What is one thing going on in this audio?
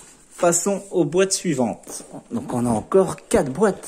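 Cardboard scrapes against cardboard as a box is pulled.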